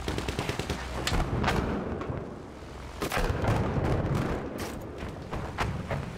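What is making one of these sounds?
Anti-aircraft shells burst with dull booms.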